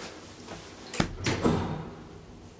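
An elevator door slides shut with a thud.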